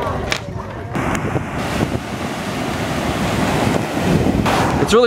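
Ocean waves wash onto the shore.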